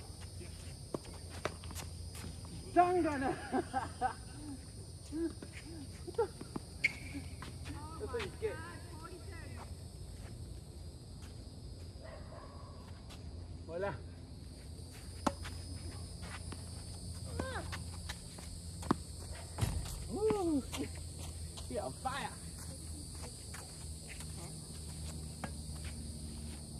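Tennis balls pop off racquets in a rally outdoors.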